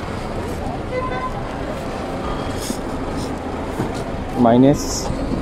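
Men talk in a busy murmur nearby, outdoors.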